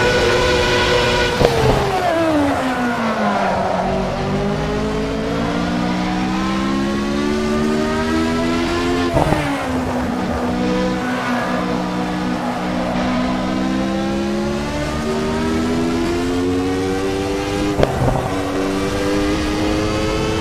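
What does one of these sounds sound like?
A racing car engine screams at high revs, dropping sharply with each downshift and climbing again through the gears.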